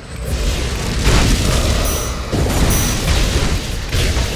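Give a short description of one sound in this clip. Fiery blasts burst with loud thumps.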